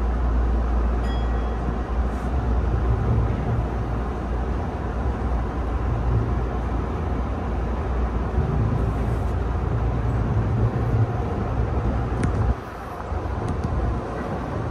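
A train rumbles and rattles steadily along the tracks.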